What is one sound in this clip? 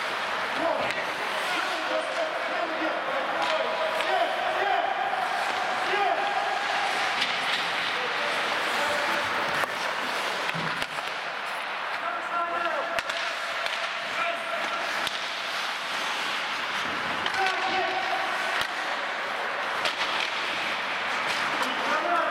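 Hockey sticks clack against a puck now and then.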